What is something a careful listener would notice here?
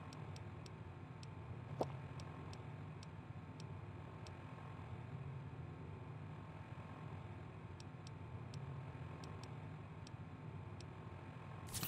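Soft electronic clicks tick as a menu scrolls, in short bursts.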